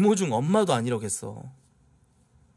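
A man sings loudly into a close microphone.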